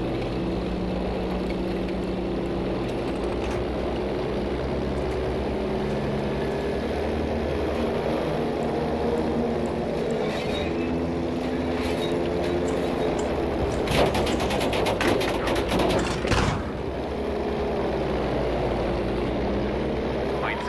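A propeller plane's engines drone steadily.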